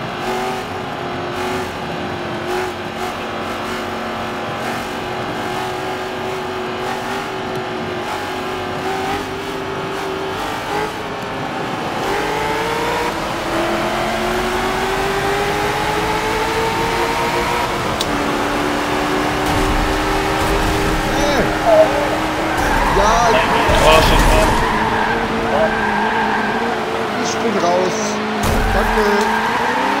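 A racing car engine roars steadily and climbs in pitch as it speeds up.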